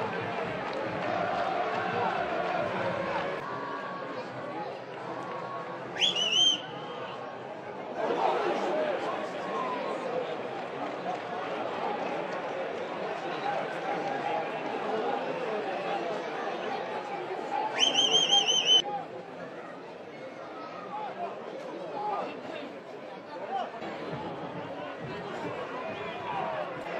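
A stadium crowd murmurs and cheers outdoors.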